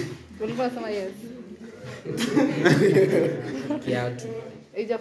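Young men laugh and talk close by.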